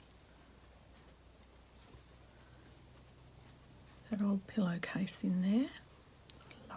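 Fabric rustles softly under hands.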